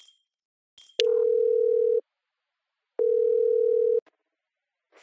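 A phone call rings with long, steady beeps.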